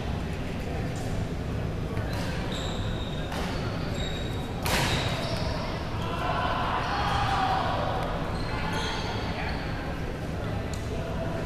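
Shuttlecocks are struck with rackets across a large echoing hall.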